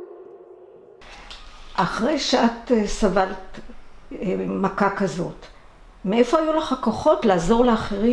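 An elderly woman speaks calmly and close.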